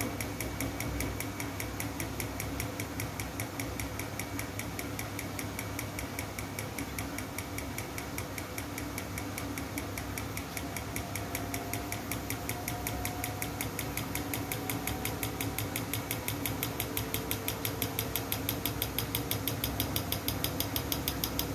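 Laundry swishes and tumbles in water inside a washing machine.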